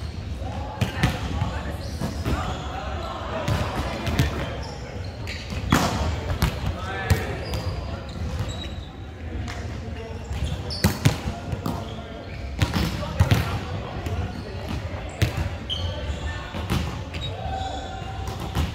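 A volleyball is hit with sharp slaps that echo through a large hall.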